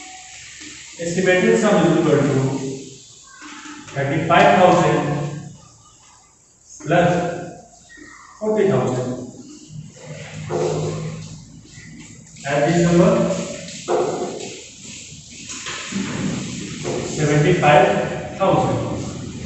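A young man explains calmly and clearly in a room with a slight echo.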